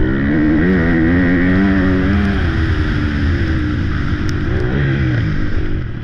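A dirt bike engine roars and revs up and down close by.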